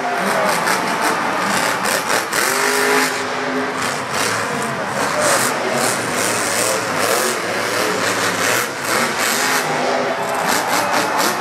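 A large crowd cheers and shouts nearby.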